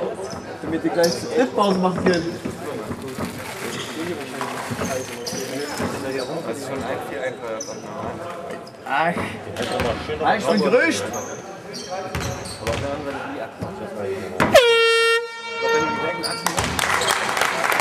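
Players and spectators talk and call out in a large echoing hall.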